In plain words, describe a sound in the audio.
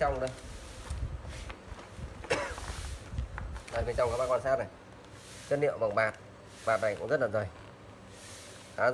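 Stiff plastic sheeting rustles and crinkles.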